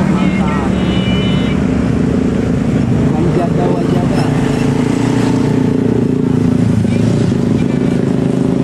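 Motorcycle engines buzz as they ride past.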